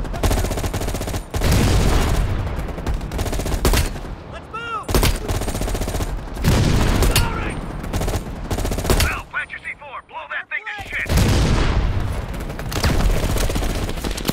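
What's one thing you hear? Explosions and gunfire rumble all around.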